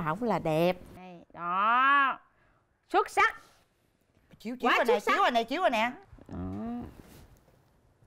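A woman speaks emotionally nearby.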